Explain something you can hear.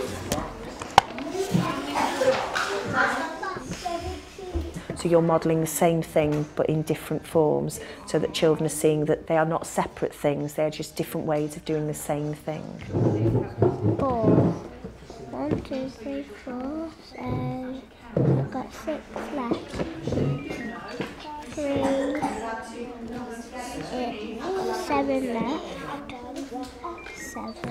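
A young girl speaks calmly nearby.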